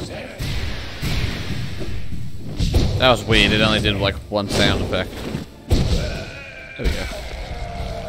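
Sharp impacts and whooshes of a fight burst out repeatedly.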